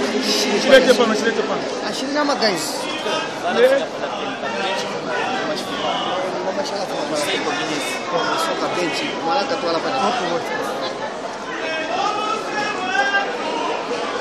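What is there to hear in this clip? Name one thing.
A crowd of people chatters loudly nearby.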